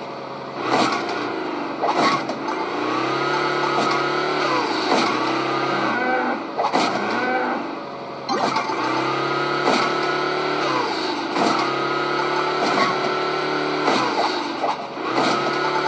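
Coins chime as they are collected.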